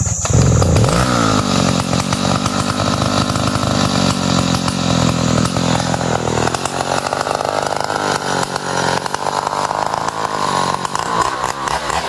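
A chainsaw engine runs steadily close by.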